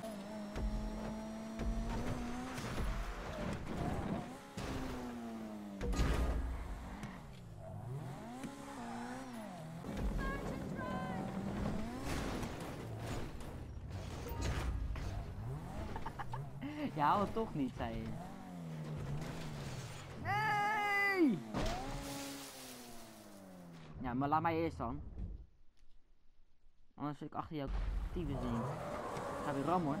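A buggy's engine roars and revs up and down.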